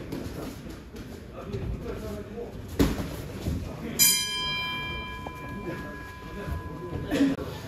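Boxing gloves thud against each other in quick punches.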